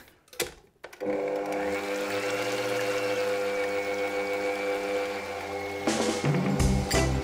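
An electric stand mixer whirs steadily.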